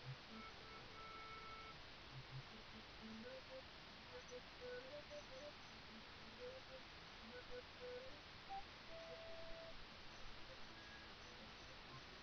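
Chiptune music plays with short beeping notes.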